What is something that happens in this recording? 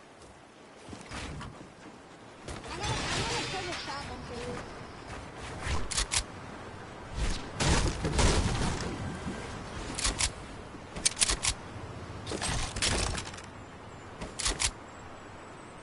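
Wooden building pieces clack into place in a video game in quick bursts.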